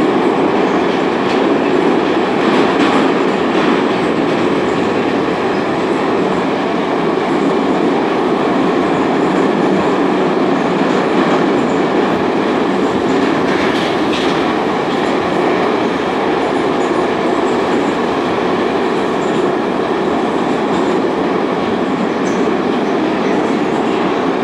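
A subway train rumbles and roars loudly along its tracks.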